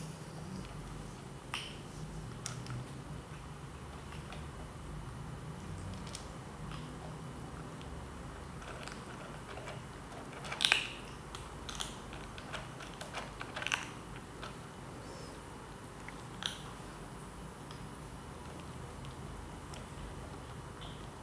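Kittens crunch dry food from a plastic bowl.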